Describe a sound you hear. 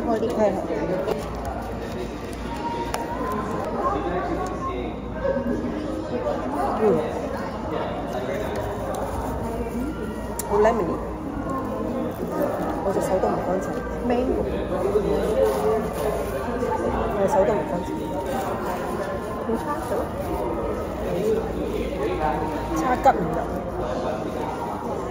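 A young woman talks calmly and close by.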